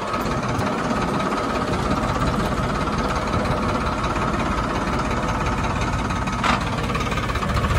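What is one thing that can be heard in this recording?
A plough scrapes and turns the dry soil.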